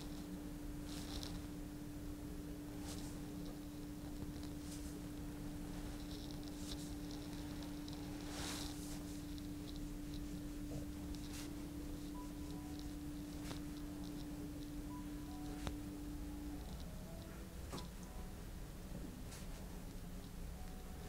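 Hands rub softly over a cloth towel.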